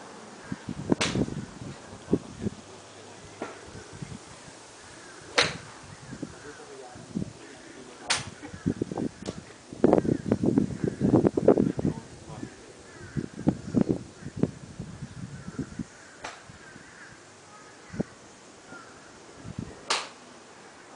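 A golf club strikes a ball with a sharp crack, several times.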